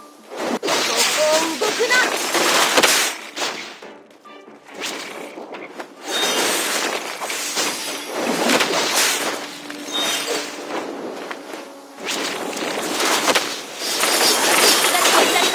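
Magical blasts and hits crackle and thump in a fast fight.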